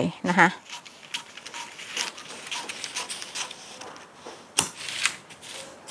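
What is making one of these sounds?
Scissors snip and cut through paper.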